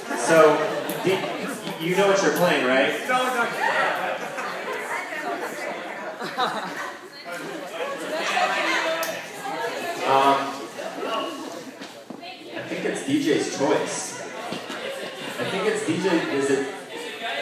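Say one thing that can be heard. A large crowd of young men and women chatters and shouts loudly in an echoing hall.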